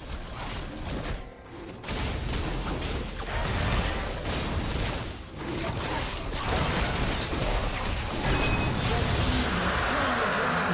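Video game combat sound effects clash and burst.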